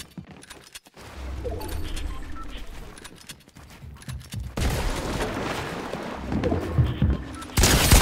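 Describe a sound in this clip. Wooden building pieces snap quickly into place with clacks.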